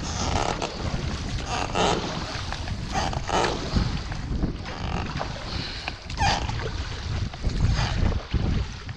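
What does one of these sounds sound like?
Water splashes and sloshes against an inflatable boat's hull.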